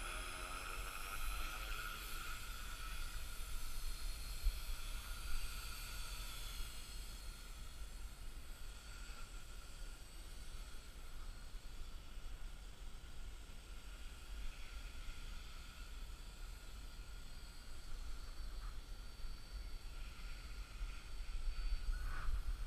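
Small drone propellers whine steadily nearby.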